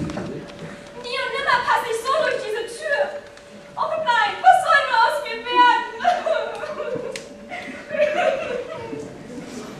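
A young woman speaks with animation on a stage.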